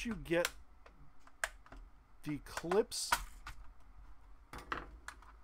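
Plastic parts click and clatter as hands handle them.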